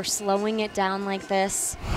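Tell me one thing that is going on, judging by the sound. A crowd cheers in a large echoing arena.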